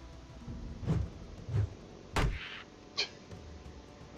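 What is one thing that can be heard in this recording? Game combat sounds thud and crash in quick bursts.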